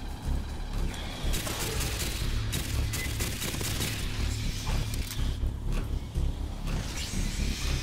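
Automatic rifle fire rattles in rapid bursts.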